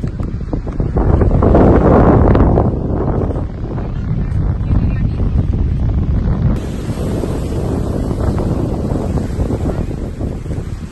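Wind blusters loudly against the microphone outdoors.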